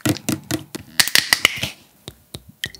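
Liquid pours from a bottle into a small glass.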